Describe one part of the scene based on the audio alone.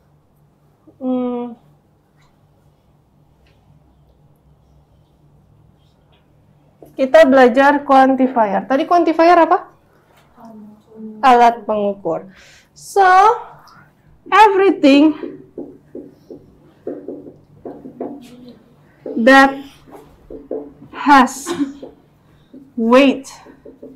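A young woman speaks calmly and clearly, close by, as if teaching.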